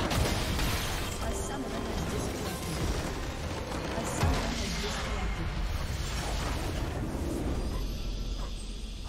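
Magic blasts and clashing battle effects crash loudly.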